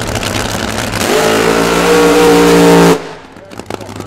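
A drag racing engine bursts into a deafening roar at full throttle, then cuts off sharply.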